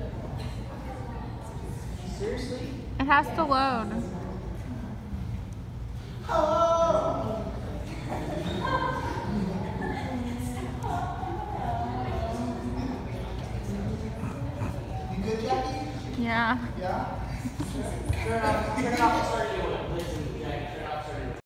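A crowd of young people chatters and cheers in a large echoing room.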